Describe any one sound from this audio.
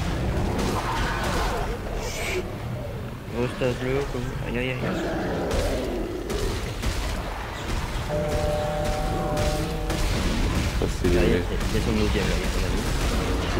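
Energy weapon shots fire in quick bursts.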